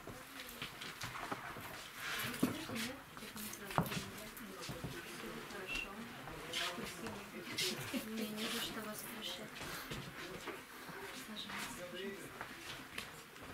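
Several adults talk quietly nearby.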